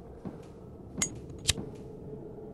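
A lighter clicks and flicks alight.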